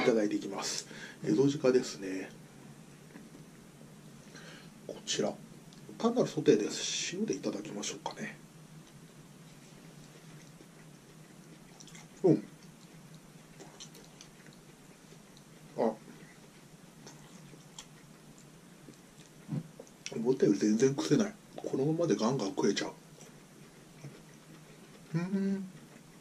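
A man chews food loudly and smacks his lips, close by.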